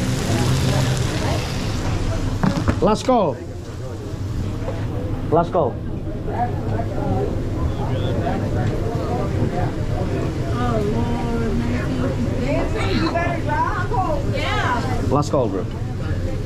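Several people talk and laugh nearby.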